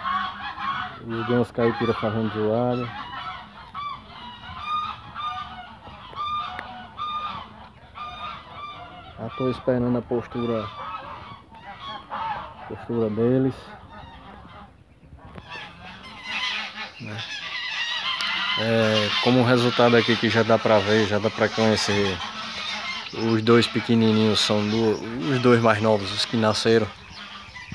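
Geese honk loudly in repeated bursts, outdoors.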